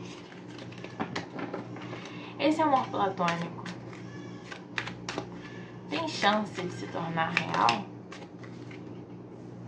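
Playing cards riffle and slap as they are shuffled by hand.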